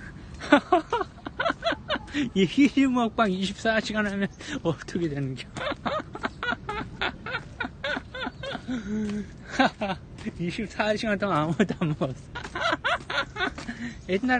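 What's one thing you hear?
A young man laughs loudly close to the microphone.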